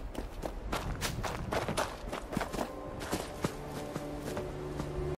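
Footsteps crunch quickly over gravel and stone.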